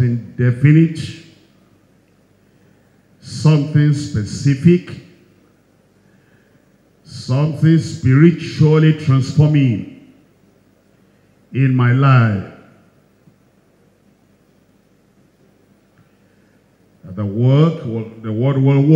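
A middle-aged man preaches into a microphone in bursts with pauses, his voice carried by a loudspeaker.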